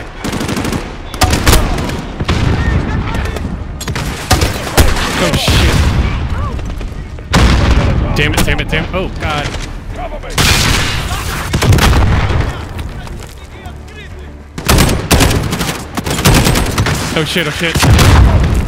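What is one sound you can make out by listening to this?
Rifle shots fire in loud, rapid bursts.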